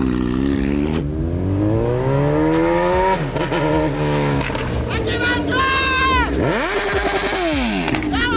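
A motorcycle engine roars as the bike speeds closer.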